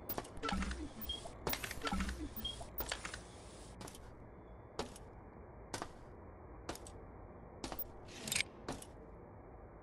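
Footsteps thud steadily on a metal floor.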